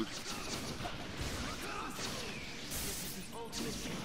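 A burst of crackling energy swells and hisses.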